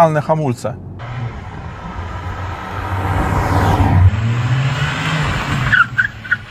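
A car engine revs loudly and rises in pitch as the car pulls away.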